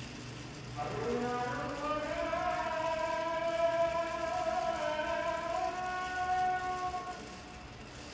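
A young man hums a long, steady tune close by.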